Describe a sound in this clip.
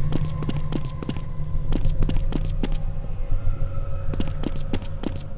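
Quick footsteps thud steadily on a stone path.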